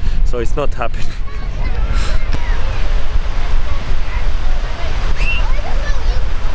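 Small waves wash gently onto the shore.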